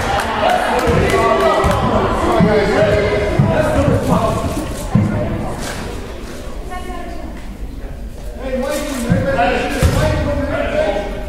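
Sneakers squeak and feet thump on a wooden gym floor.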